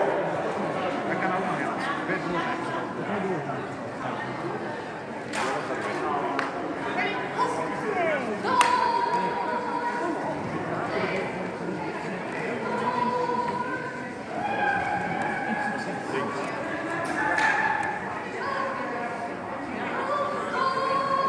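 A woman calls out to a dog in a large echoing hall.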